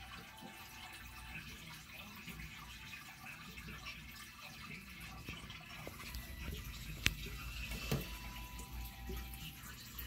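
Air bubbles stream and fizz steadily in water.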